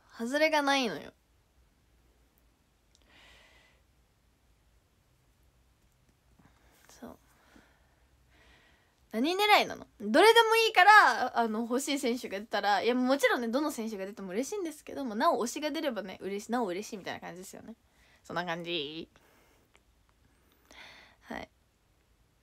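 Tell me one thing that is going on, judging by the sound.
A young woman talks close to a microphone, animated and cheerful, with pauses.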